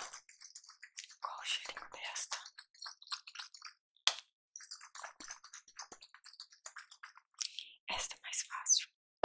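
A plastic container crinkles and crackles in a gloved hand close to a microphone.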